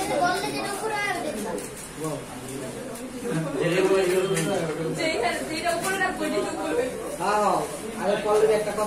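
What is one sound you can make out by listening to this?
Young men talk nearby.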